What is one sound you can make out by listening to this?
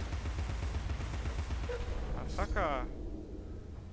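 A rapid-fire gun rattles and booms.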